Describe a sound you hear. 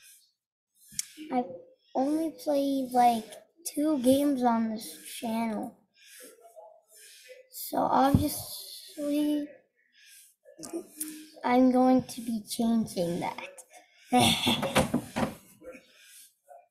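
A boy talks with animation, close to a microphone.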